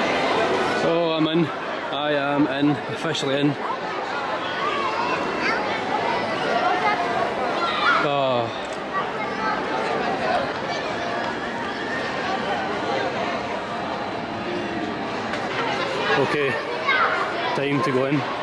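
A crowd of people chatters outdoors all around.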